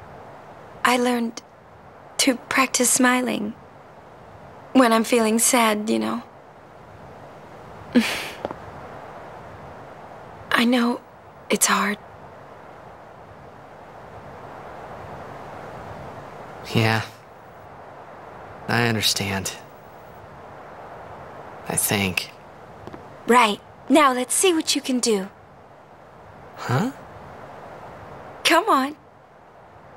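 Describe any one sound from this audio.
A young woman speaks softly and warmly, close by.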